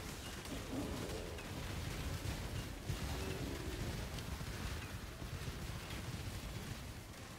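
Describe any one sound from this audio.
Spell effects crackle and crash in a busy stream of game noise.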